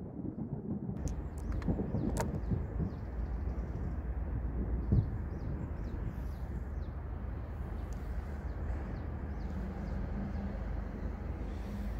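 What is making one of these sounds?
Dice knock softly as they are rolled and set down on a cloth.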